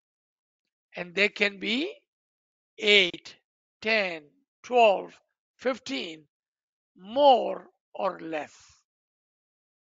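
A man speaks calmly into a microphone, heard over an online call.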